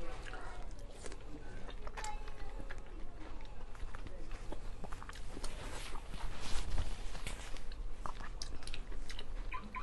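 A young woman chews food noisily close to a microphone.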